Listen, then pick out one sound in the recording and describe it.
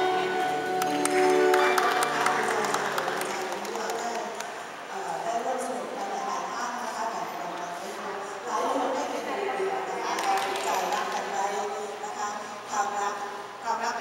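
A band plays music along with the singing.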